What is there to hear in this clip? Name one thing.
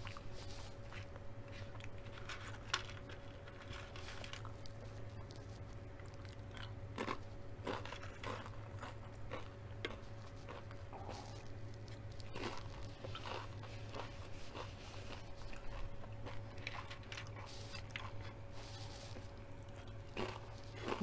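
A woman chews food with wet smacking sounds close to a microphone.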